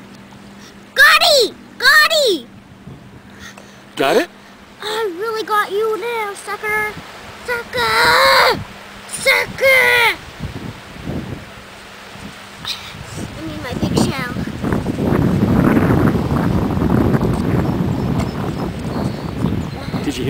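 A child digs and scrapes in wet sand with bare hands.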